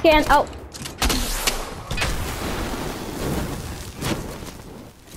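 A shotgun fires in loud, sharp blasts.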